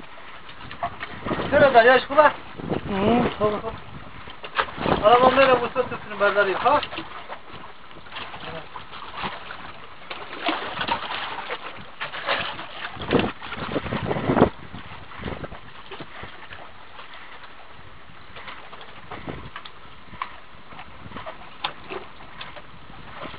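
Waves lap gently against rocks.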